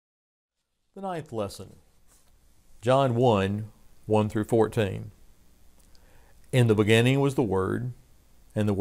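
An older man speaks calmly and clearly into a close microphone.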